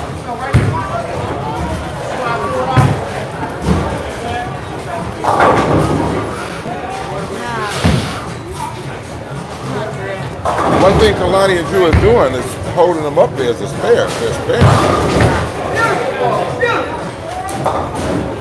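Bowling balls roll down the lanes and crash into pins.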